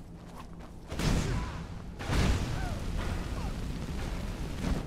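A man grunts in pain.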